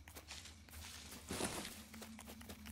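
A leafy bush rustles as berries are picked.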